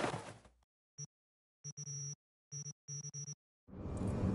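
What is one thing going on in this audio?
Short electronic menu beeps sound in quick bursts.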